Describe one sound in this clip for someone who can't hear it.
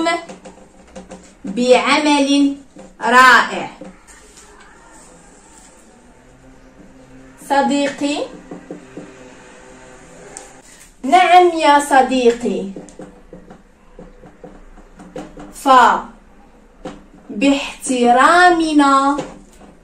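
A young woman speaks calmly and clearly close by, in short phrases.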